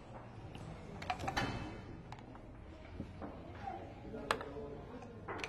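Dice rattle in a cup and clatter onto a board.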